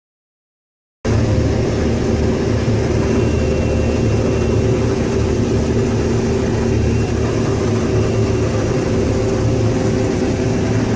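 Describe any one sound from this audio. A harvester header rattles as it cuts through grain.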